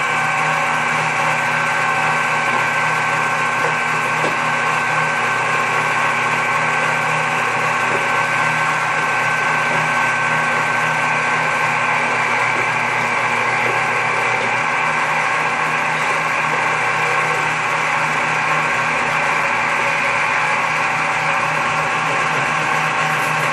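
An electric food mill whirs steadily as it grinds.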